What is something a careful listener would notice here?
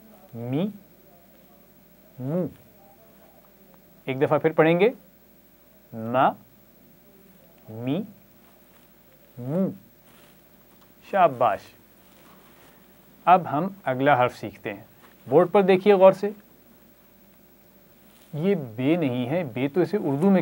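A man speaks calmly and clearly into a close microphone, sounding out syllables one at a time.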